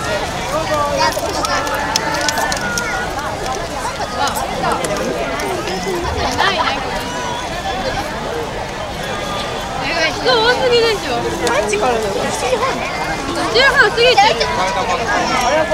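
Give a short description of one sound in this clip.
A crowd of men and women talk and call out nearby outdoors.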